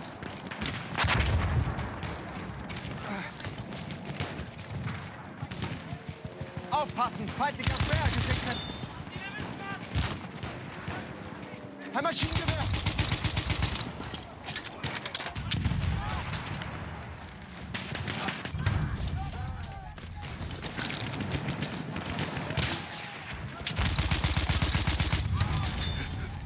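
A submachine gun fires rapid bursts of shots close by.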